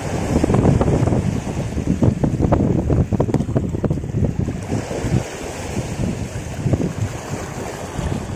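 A fishing reel clicks as it is wound.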